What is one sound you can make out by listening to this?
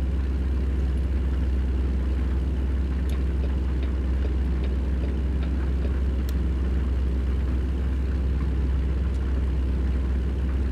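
A truck engine drones with a deep, steady rumble.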